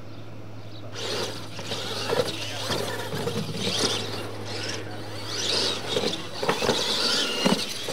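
Small electric model trucks whine and buzz as they race over dirt outdoors.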